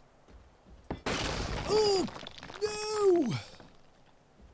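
A wooden wall crashes down and breaks apart.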